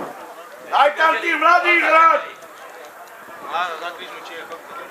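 A man shouts loudly across an open field.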